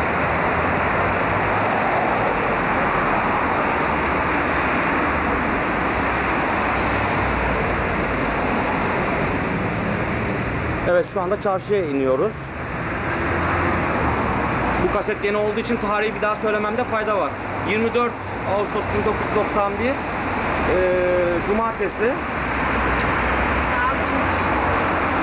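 Traffic rumbles steadily along a busy street outdoors.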